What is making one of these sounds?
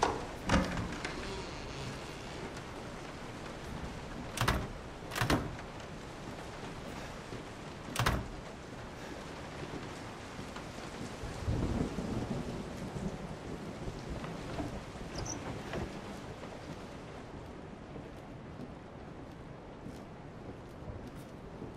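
Footsteps creak on old wooden floorboards.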